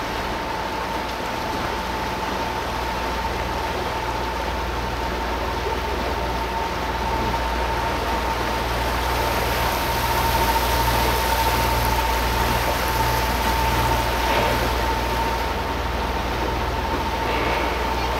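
Water splashes and churns along a boat's hull.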